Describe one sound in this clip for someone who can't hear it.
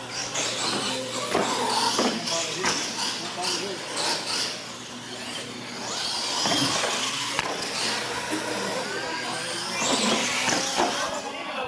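Toy truck tyres thud and clatter on landing after jumps.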